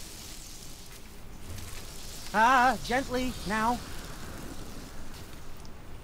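Electricity crackles and fizzes along an arrow.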